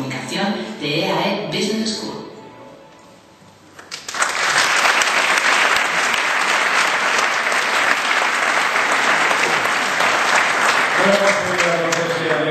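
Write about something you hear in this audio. A man speaks through a loudspeaker in a large hall.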